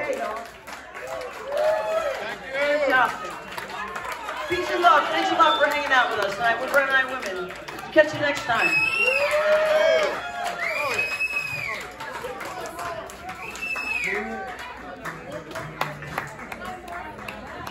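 A band plays music in a large room.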